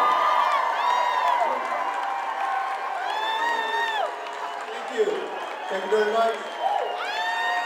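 A woman sings loudly through loudspeakers in a large hall.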